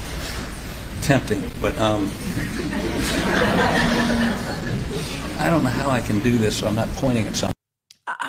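An elderly man speaks hesitantly through a microphone.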